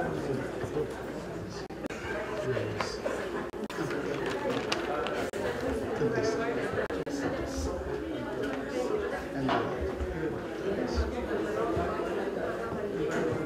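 A large group of people sings together in a room with echo.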